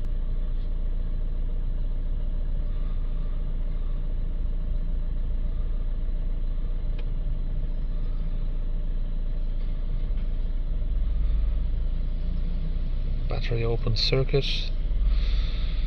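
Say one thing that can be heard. A finger taps lightly on a touchscreen.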